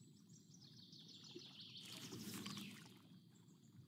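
A fishing line whooshes out in a cast.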